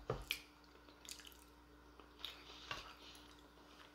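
A woman chews food close to a microphone.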